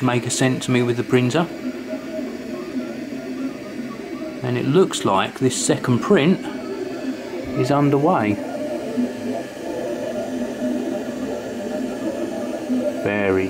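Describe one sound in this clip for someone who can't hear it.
A 3D printer's motors hum steadily.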